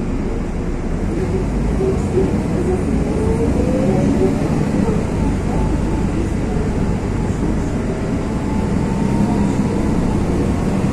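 Wind gusts through the trees.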